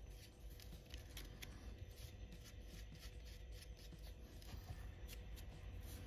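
A stick scrapes filler paste onto a small wooden frame.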